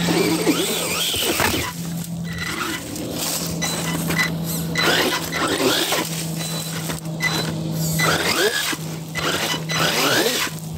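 Tyres crunch over dry leaves and dirt.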